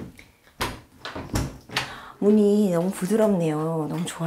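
A door opens with a click.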